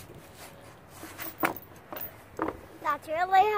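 A metal chain clinks against wood.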